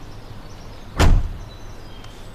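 A car door slams shut with a heavy thud.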